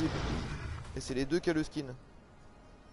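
A large beast grunts and bellows nearby.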